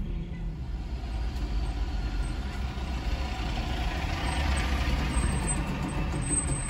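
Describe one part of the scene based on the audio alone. A car engine idles steadily in slow traffic.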